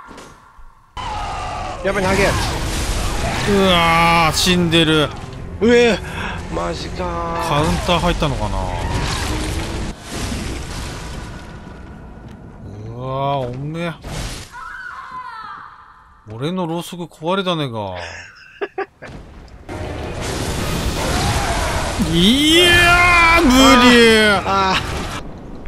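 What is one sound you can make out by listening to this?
Blades slash and clash in a fierce fight.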